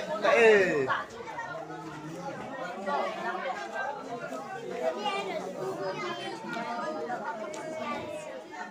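A young woman talks on a phone close by, chatting casually.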